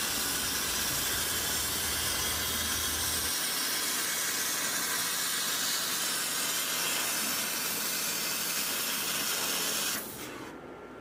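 A laser cutter hisses loudly as it cuts through steel plate.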